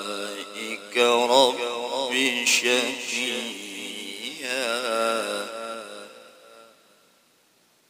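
A man chants in a long, melodic voice into a microphone, then falls silent.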